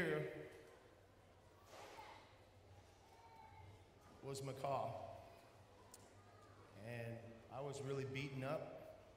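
A man speaks slowly and calmly into a microphone over a loudspeaker, with pauses between phrases.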